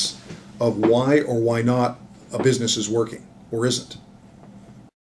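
A middle-aged man speaks with animation, close to the microphone.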